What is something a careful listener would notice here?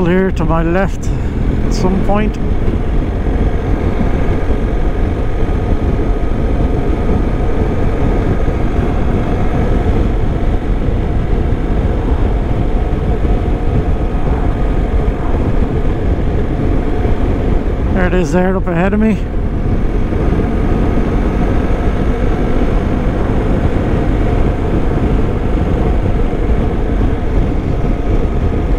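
Wind rushes loudly past a helmet.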